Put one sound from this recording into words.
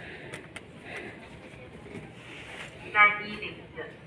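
A card slides into a reader with a soft click.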